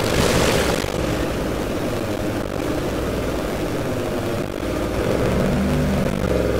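A vehicle engine roars steadily.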